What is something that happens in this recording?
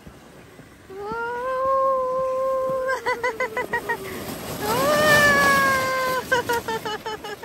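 A sled scrapes and hisses over snow.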